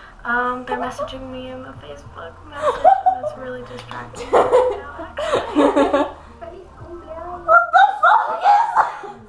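Young women laugh loudly nearby.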